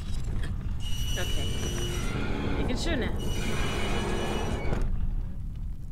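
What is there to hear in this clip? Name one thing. A heavy metal hatch creaks and grinds as it turns open.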